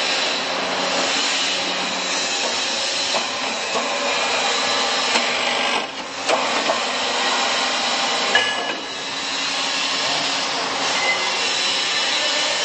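An electric pump motor runs with a loud, steady whirring hum.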